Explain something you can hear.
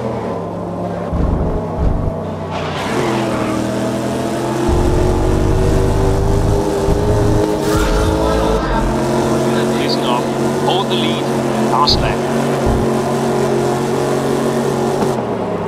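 A racing car engine roars at high revs, climbing in pitch and dropping with each gear change.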